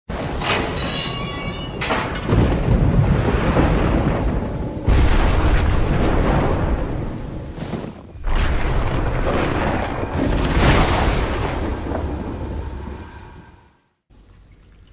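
Heavy rain pours down in a loud, rushing hiss.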